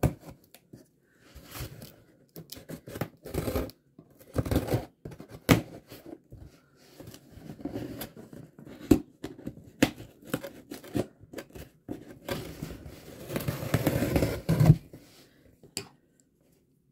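Hands rub and tap on a cardboard box.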